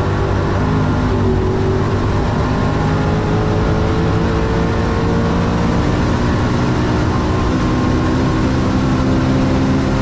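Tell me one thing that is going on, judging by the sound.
A car engine roars loudly at high speed, its pitch slowly rising.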